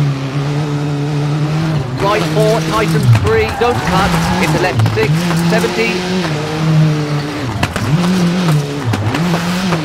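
A car engine roars, revving up and dropping sharply with each gear change.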